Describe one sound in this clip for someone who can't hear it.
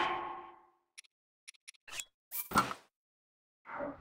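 Soft menu clicks sound in quick succession.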